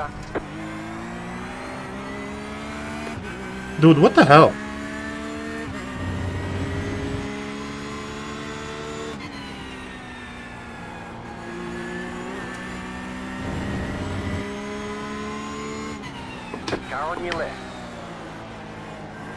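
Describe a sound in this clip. A racing car engine roars steadily, its pitch rising and falling with gear changes.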